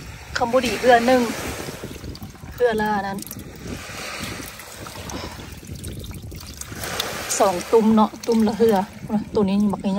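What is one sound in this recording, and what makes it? Water splashes softly as a hand reaches into a bucket of small fish.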